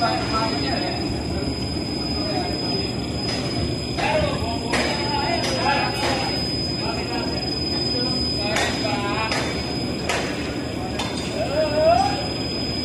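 Heavy machinery hums steadily.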